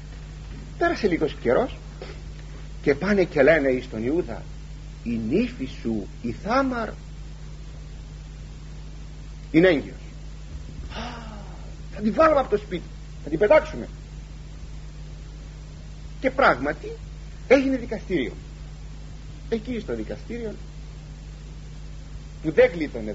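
An elderly man speaks calmly and slowly, with pauses, close to a microphone.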